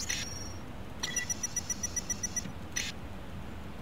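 Short electronic menu beeps sound in quick succession.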